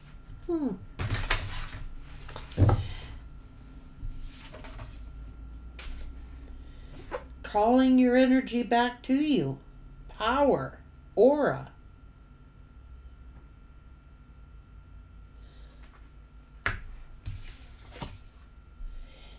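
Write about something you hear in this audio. Cards shuffle and slap onto a table.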